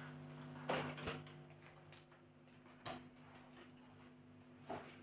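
An accordion holds a soft, steady chord.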